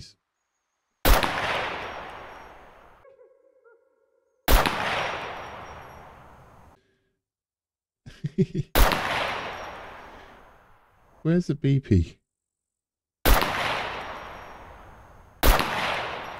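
Rifle shots boom one at a time, each rolling off in a long echo.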